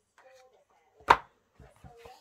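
A book thumps down on a table.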